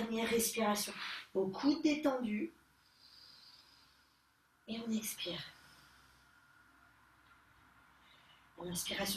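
A woman speaks calmly and slowly, giving instructions close to the microphone.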